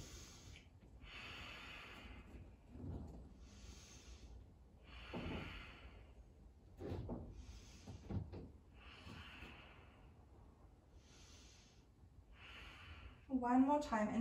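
A woman breathes in and out slowly and deeply.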